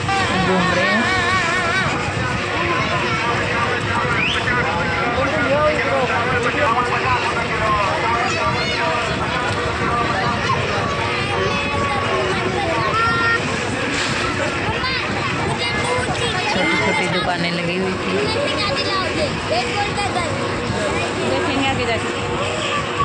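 A busy crowd of men and women chatters all around outdoors.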